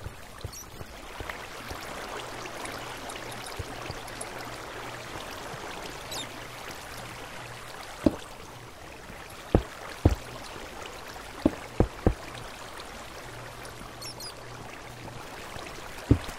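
Water trickles and splashes steadily nearby.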